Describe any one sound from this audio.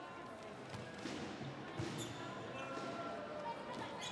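A volleyball is struck hard.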